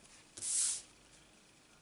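A sheet of paper slides and rustles briefly across a table.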